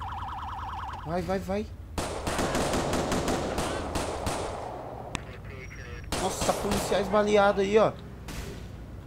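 A police siren wails.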